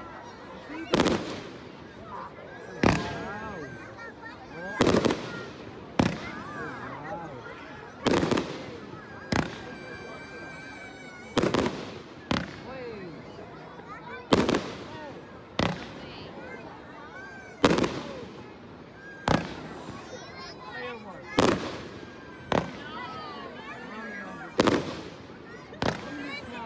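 Aerial firework shells burst with sharp booms.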